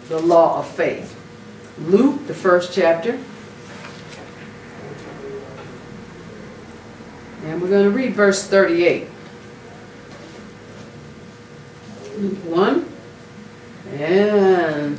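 An older woman speaks slowly into a microphone, with long pauses.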